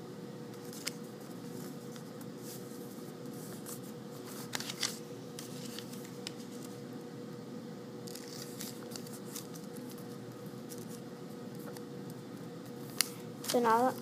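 Fingernails crease paper with light taps.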